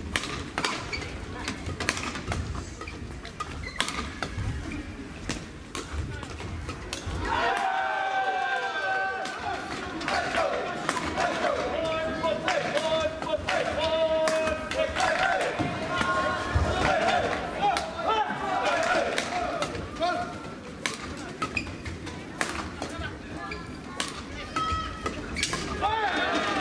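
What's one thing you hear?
Rackets strike a shuttlecock in quick rallies in a large echoing hall.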